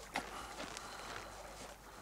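Footsteps crunch softly on snow.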